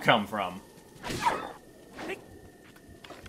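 A sword swishes through the air in a sweeping spin.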